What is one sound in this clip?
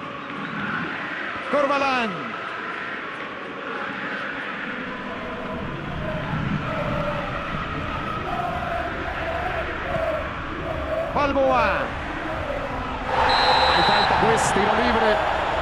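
A large stadium crowd roars and chants, swelling loudly near the end.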